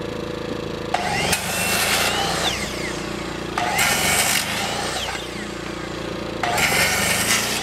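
A circular saw whines as it cuts through wood in short bursts.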